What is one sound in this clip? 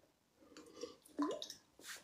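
A woman sips water from a bottle.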